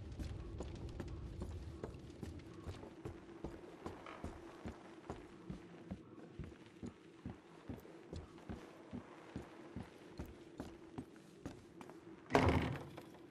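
Footsteps thud steadily on wooden floorboards.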